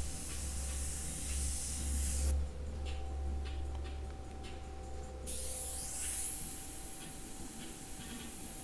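An airbrush hisses in short bursts, close by.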